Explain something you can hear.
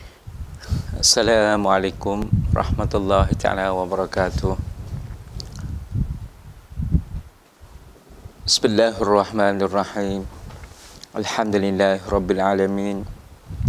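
A man recites in a drawn-out, melodic chant, close to a microphone.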